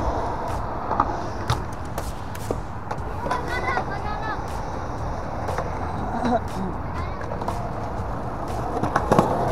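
A skateboard clacks sharply against concrete.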